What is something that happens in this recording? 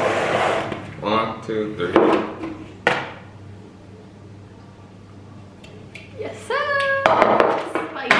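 Plastic bowls knock and scrape on a table.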